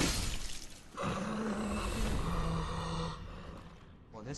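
Flames burst and roar briefly.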